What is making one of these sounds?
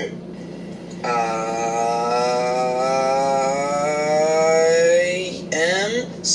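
A young woman close by lets out a long, drawn-out exclamation.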